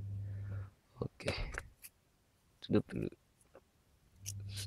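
A small plastic cutter knocks as it is picked up and set down on a table.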